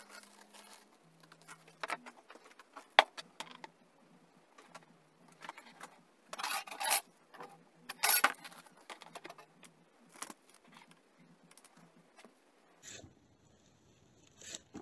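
Plastic pipe parts knock and scrape together.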